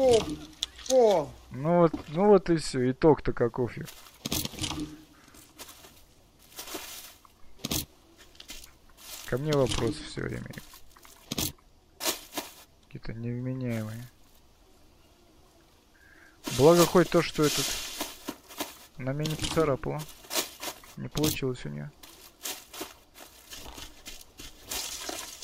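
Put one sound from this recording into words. Footsteps rustle through dry leaves and undergrowth.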